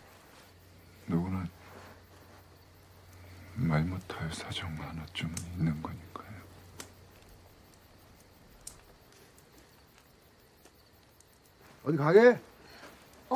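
A young woman speaks softly and tearfully.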